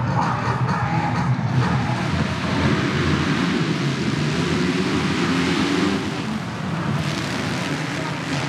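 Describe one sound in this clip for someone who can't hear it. Many motorcycle engines roar and rev loudly together outdoors.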